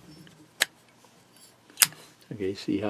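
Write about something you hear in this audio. A metal lighter lid clicks open and snaps shut.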